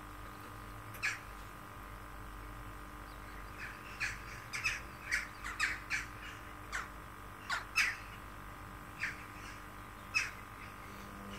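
Laundry thumps and clicks inside a turning washing machine drum.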